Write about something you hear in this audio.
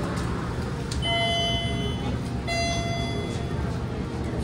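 An elevator chime beeps twice.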